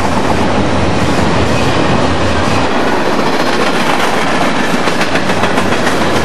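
A freight train rolls past close by with a loud rumbling roar.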